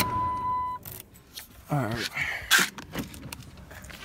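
Keys jingle and clink.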